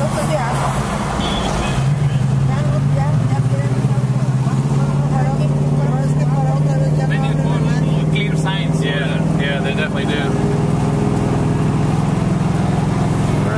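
A car engine hums steadily, heard from inside the car.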